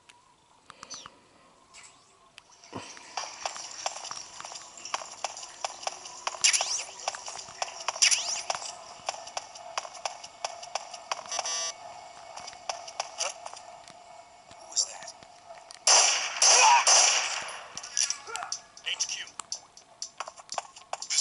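Game sound effects and music play through a small, tinny handheld speaker.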